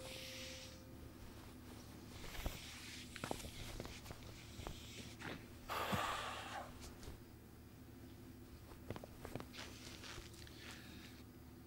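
Heavy fabric rustles as a man adjusts another man's robe.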